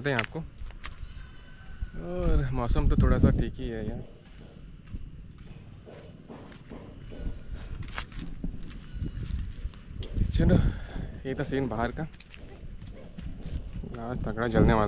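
A young man talks calmly, close to the microphone.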